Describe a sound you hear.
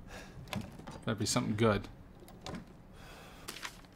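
A wooden box lid creaks open.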